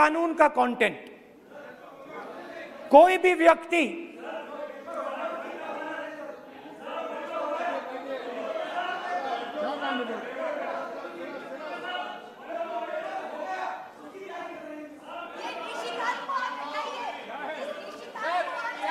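Several men shout and talk over one another in the background.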